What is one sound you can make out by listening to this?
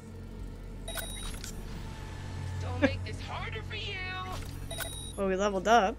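A short electronic chime rings out twice.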